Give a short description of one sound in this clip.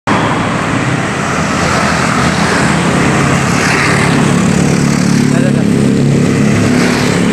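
Steady road traffic rumbles along.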